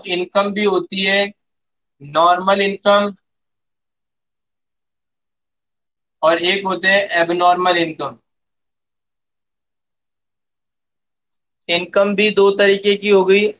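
A man speaks in short bursts, explaining calmly through a microphone.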